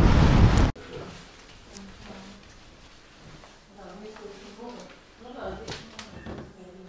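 Footsteps thud softly on wooden stairs and floor.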